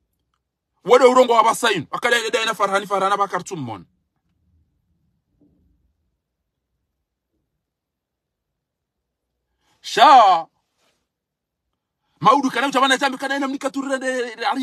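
A middle-aged man speaks close to the microphone with animation, in bursts with pauses.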